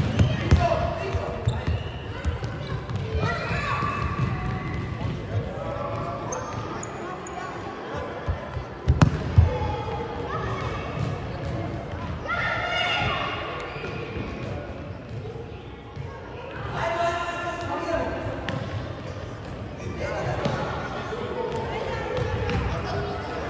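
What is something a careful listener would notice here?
Sneakers squeak and thud on a wooden floor.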